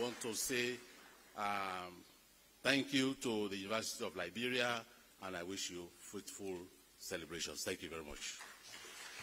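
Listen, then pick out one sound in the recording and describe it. A man speaks calmly into a microphone, heard over loudspeakers.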